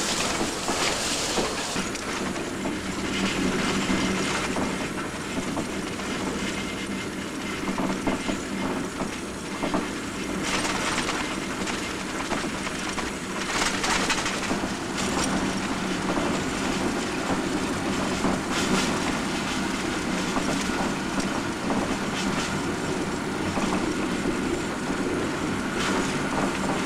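A train engine hums steadily while running along the track.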